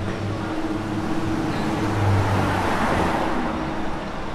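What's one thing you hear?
A car drives slowly past.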